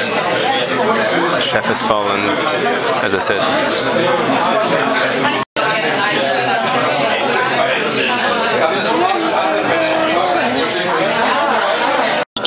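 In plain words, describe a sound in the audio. Many voices chatter and overlap loudly in a crowded room.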